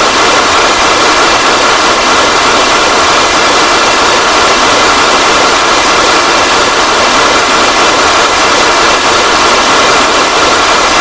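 Rocket engines roar steadily.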